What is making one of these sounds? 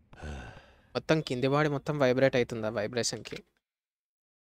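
A man speaks calmly in a deep voice into a phone.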